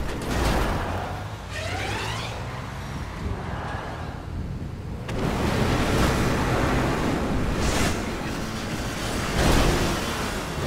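A sports car engine revs and roars as the car accelerates.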